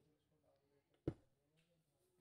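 A stone block thuds into place.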